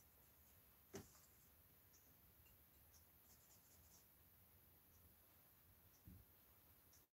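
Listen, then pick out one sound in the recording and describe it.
A paintbrush taps softly against a palette.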